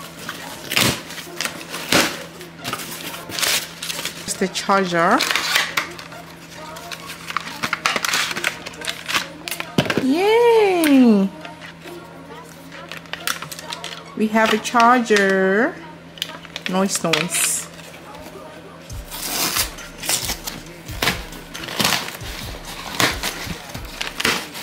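Cardboard flaps scrape and rustle as a box is opened.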